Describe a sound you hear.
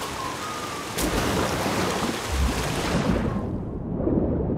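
Water splashes as a swimmer dives in.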